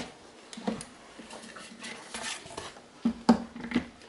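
A plastic appliance knocks against cardboard as it is lifted.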